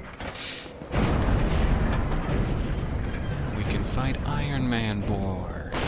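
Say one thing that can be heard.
An iron gate grinds and rattles as it moves.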